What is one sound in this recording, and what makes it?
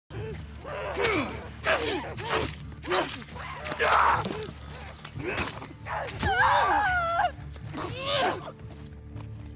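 Heavy blows thud and crack in a close fight.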